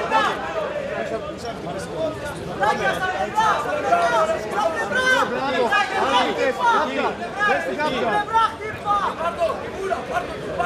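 A crowd shouts and cheers loudly in a large hall.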